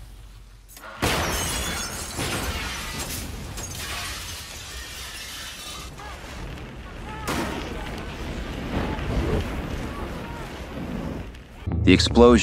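Flames roar loudly.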